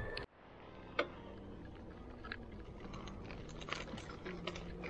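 A bicycle rattles and clicks over the road.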